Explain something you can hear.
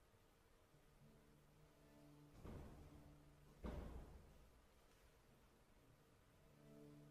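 A piano plays soft notes in a large hall.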